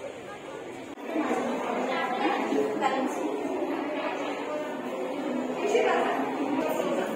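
Several adults talk nearby in a room.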